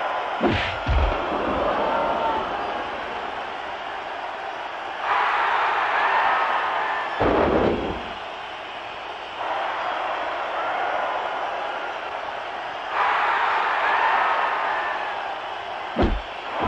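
A crowd cheers and roars steadily, swelling at times.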